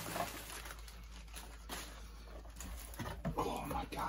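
A cardboard box flap scrapes and thumps.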